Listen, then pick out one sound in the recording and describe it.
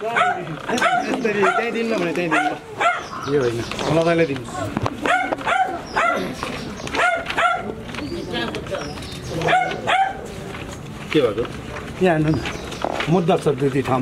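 A man speaks loudly and firmly close by.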